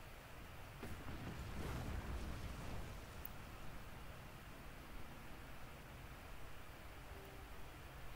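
A deep rumble of dust and rubble rolls on.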